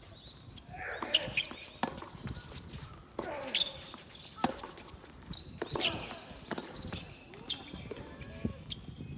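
Tennis rackets strike a ball back and forth in a rally outdoors.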